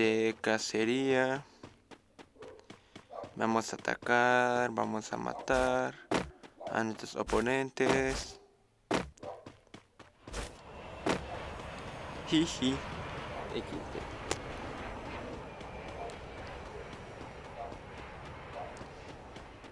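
Running footsteps patter quickly on grass and pavement.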